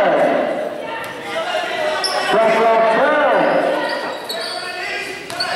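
A crowd of spectators chatters and shouts in an echoing hall.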